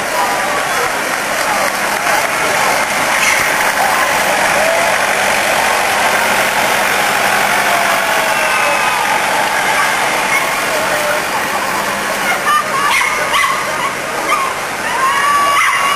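A tractor engine chugs as it pulls a parade float past.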